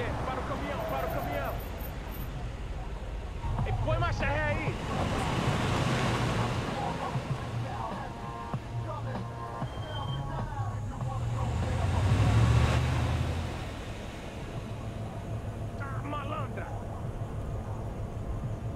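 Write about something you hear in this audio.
A truck engine rumbles as it drives over dirt.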